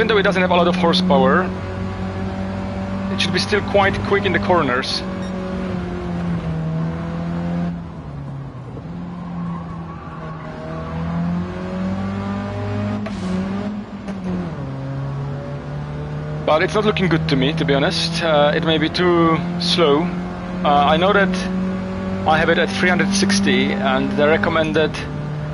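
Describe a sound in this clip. A small car engine drones steadily, its pitch rising and falling with gear changes.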